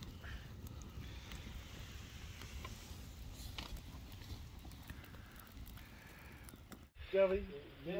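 A wood fire crackles and pops up close.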